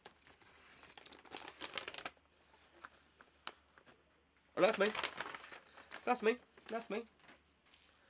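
A plastic bag rustles and crinkles in a man's hands.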